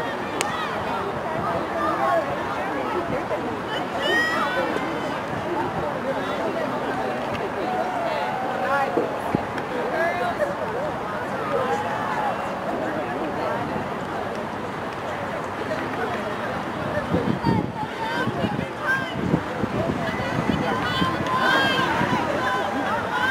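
A crowd of spectators and young female players shout and chatter outdoors.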